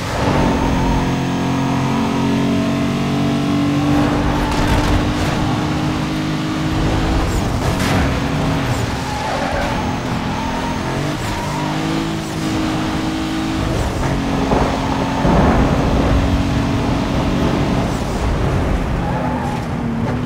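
Tyres hiss over a snowy road.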